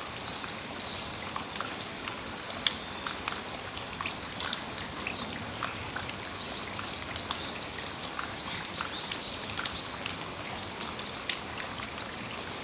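Raindrops drip and tap on a metal awning.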